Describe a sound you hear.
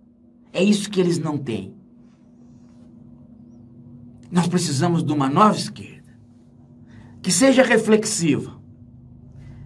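A middle-aged man speaks calmly and closely into a microphone, in short bursts with pauses.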